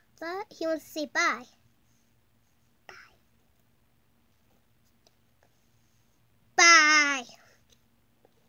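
A young boy speaks close by in a high, excited voice.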